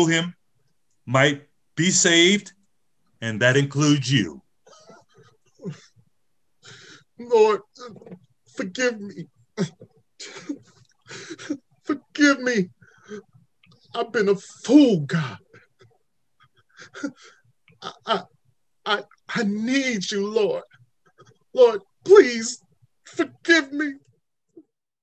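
A man speaks with emotion close to a microphone, his voice strained as if crying.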